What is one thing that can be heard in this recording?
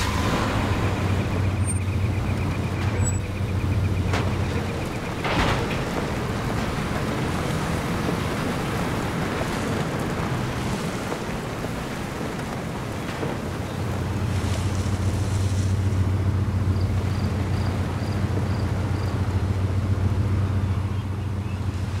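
Tyres roll over a bumpy dirt track.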